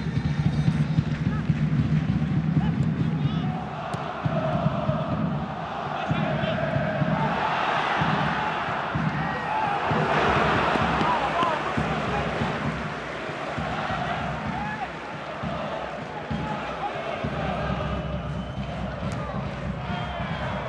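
A large stadium crowd cheers and roars, swelling to a loud peak before settling back.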